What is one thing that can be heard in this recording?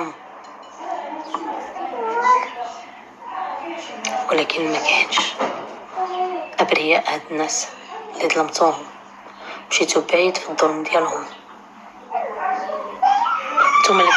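A young woman speaks tearfully through an online call.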